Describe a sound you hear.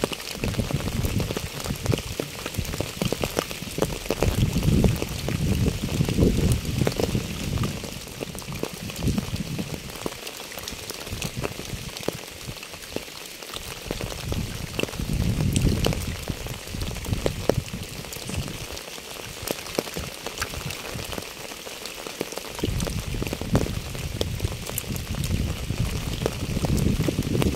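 Rain patters steadily on wet pavement and fallen leaves.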